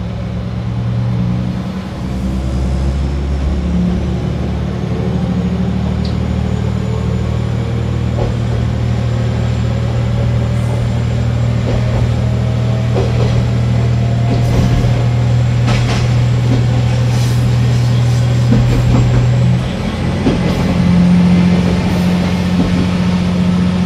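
Train wheels clatter and rumble over the rails.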